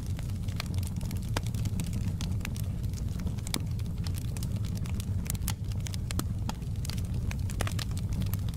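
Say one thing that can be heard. A fire roars with a low steady rumble.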